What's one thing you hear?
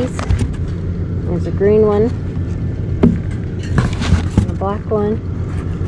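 Cardboard rustles as a cap is lifted from a box.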